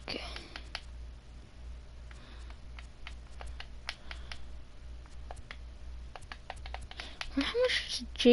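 Soft menu clicks tick repeatedly.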